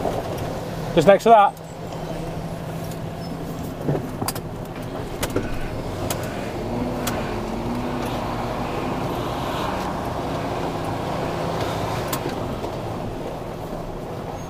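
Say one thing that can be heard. A truck engine hums steadily.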